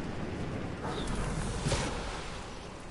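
A glider snaps open with a sudden whoosh.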